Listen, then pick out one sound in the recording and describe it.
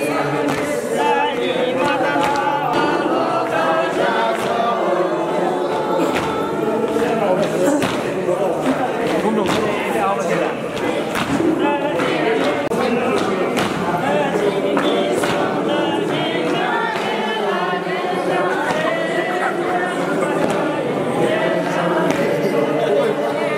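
A group of men and women sing together loudly.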